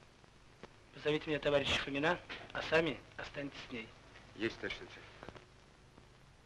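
A man speaks sternly, up close.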